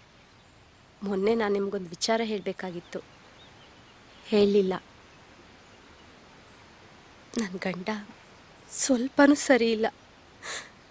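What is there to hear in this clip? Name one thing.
A young woman speaks close by, firmly and with feeling.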